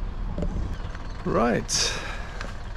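A middle-aged man speaks close by.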